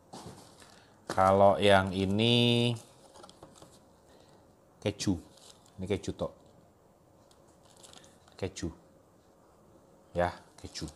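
A cardboard box rustles as it is handled.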